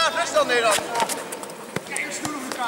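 A football thuds repeatedly against a man's foot.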